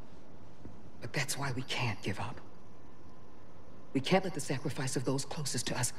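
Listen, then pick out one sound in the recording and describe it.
A young woman speaks earnestly and close by.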